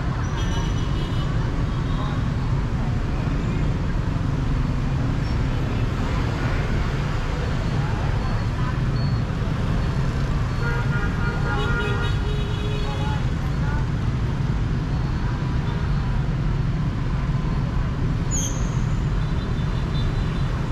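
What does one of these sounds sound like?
Motorbikes hum and rumble steadily in busy street traffic outdoors.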